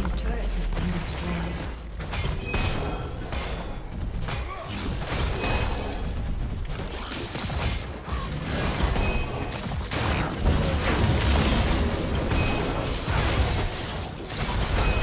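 Magic blasts and explosions crackle and boom in a fast, chaotic fight.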